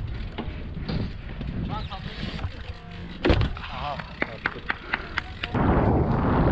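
Bicycle tyres rumble and knock over a wooden ramp.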